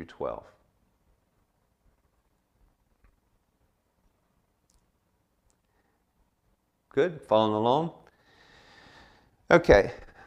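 A man speaks calmly and close to a microphone, with long pauses.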